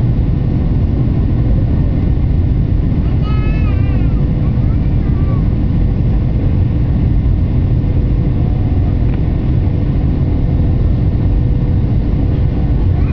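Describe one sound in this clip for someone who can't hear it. Jet engines roar steadily as an airliner flies low.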